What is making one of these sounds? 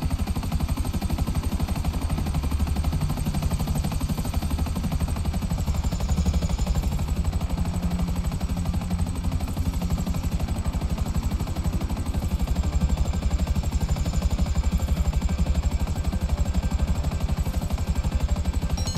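Helicopter rotor blades chop steadily and loudly overhead.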